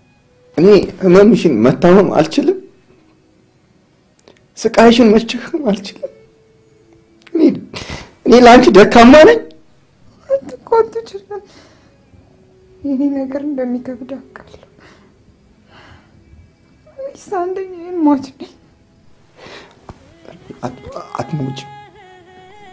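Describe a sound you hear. A woman moans softly, close by.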